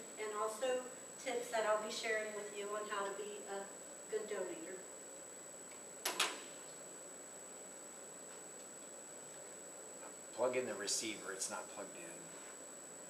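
A woman speaks calmly to a small group.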